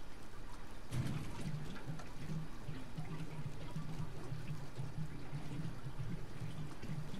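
Fuel gurgles steadily as it is poured from a can into a car.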